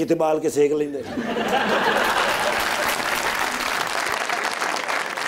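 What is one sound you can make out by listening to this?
A studio audience claps and cheers.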